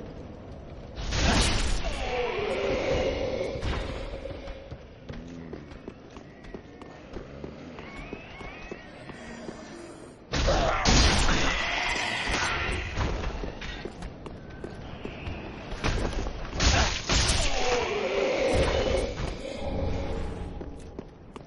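Swords clash and strike with sharp metallic hits.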